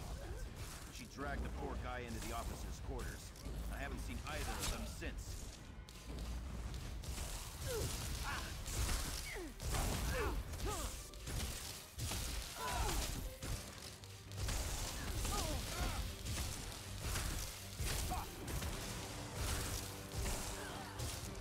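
Magic blasts burst and crackle in a game.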